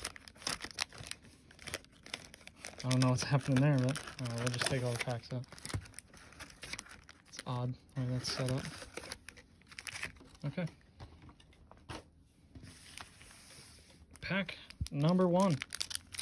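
Foil packs rustle and crinkle as they are handled.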